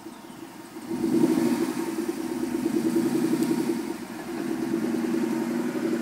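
A car engine revs and the car pulls away.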